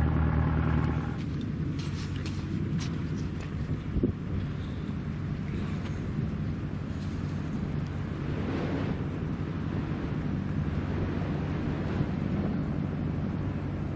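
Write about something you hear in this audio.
Wind blows hard and rumbles against a microphone outdoors.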